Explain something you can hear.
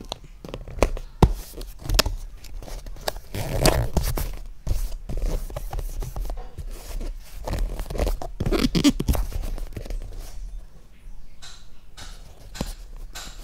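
Hands tap and rub against a cardboard box.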